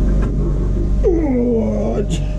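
A large metal sheet wobbles with a warbling rumble.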